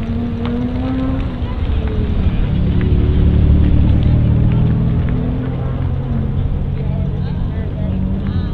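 A car engine revs and whines in the distance.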